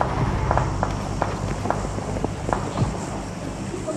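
Footsteps crunch through grass at a steady walking pace.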